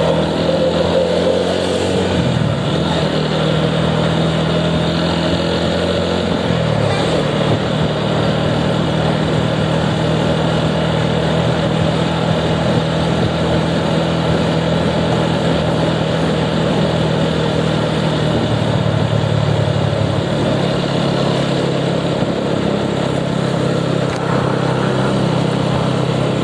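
A motorcycle engine hums steadily up close, its pitch shifting now and then as it changes speed.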